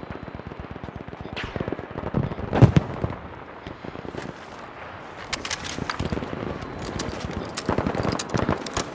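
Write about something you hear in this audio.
Gunfire crackles and pops in the distance.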